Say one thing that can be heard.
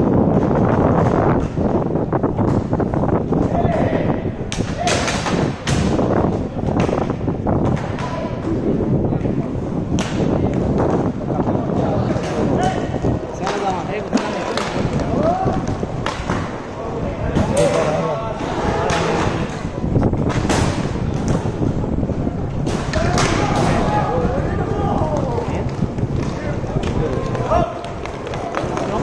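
Players shout to each other across an open court.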